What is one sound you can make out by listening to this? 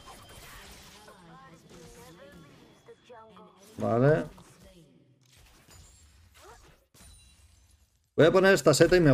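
A young man talks with animation into a close microphone, at times loudly.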